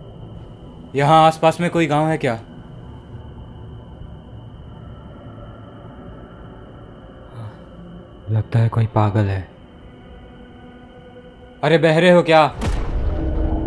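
A man speaks in a tense, wary voice.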